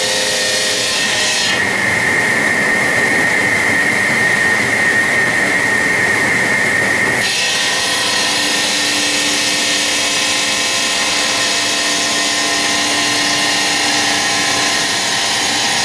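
A stone cutting machine grinds loudly through stone with a steady high whine.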